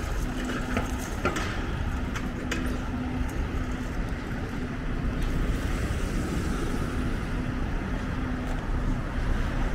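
A truck engine idles nearby.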